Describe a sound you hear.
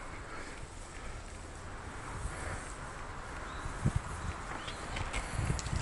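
Footsteps tread slowly on a paved path outdoors.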